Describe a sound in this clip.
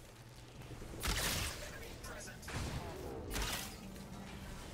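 An arrow whooshes from a bow.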